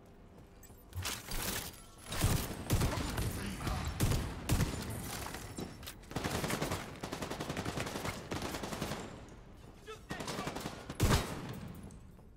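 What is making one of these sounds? Rapid gunfire bursts loudly, echoing in an enclosed space.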